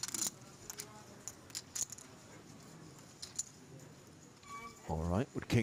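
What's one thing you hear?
Poker chips click together on a table.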